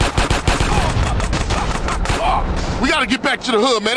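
A car explodes with a loud blast.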